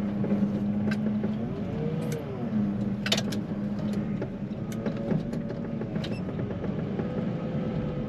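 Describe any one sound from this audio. A heavy diesel engine rumbles and hums steadily close by.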